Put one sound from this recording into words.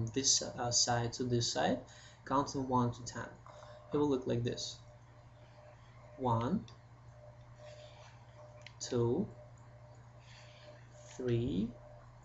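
A man speaks close by, calmly and slowly, in short phrases.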